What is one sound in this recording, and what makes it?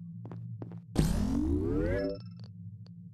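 A rising electronic tone sounds as a game device activates.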